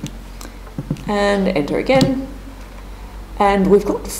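Calculator buttons click as they are pressed.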